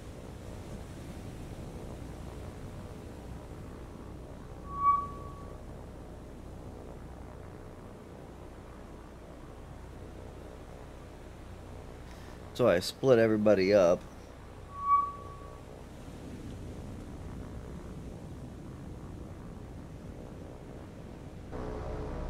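An aircraft engine drones steadily in the distance.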